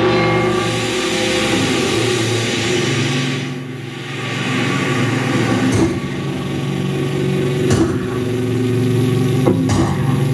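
An electric guitar plays droning, distorted notes.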